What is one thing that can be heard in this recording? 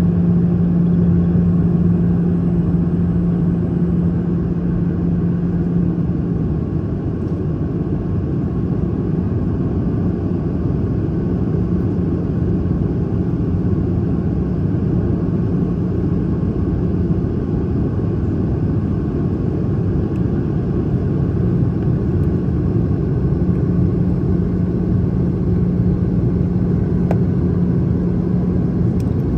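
Jet engines roar steadily with a low drone.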